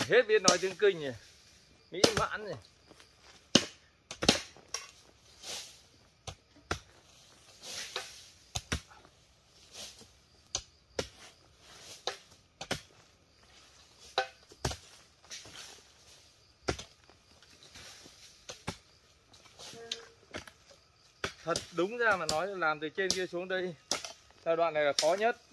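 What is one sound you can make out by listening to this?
A hoe strikes and scrapes dirt again and again.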